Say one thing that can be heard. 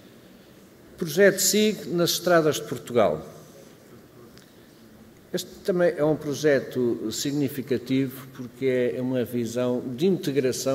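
An older man speaks calmly into a microphone, heard through loudspeakers in a large hall.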